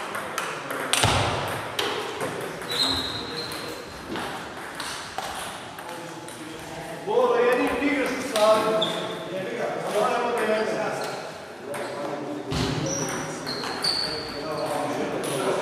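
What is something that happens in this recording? Table tennis balls click sharply on tables and paddles in a large echoing hall.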